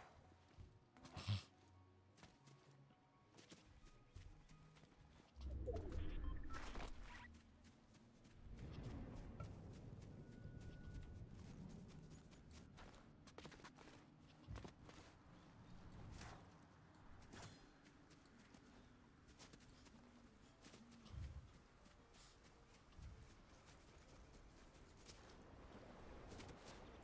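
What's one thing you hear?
Game footsteps patter quickly as a character runs.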